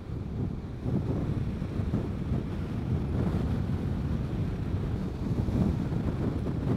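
Wind buffets loudly against the rider on a moving scooter.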